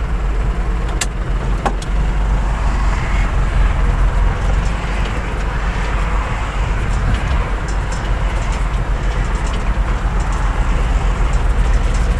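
A tractor engine rumbles loudly and steadily from inside the cab.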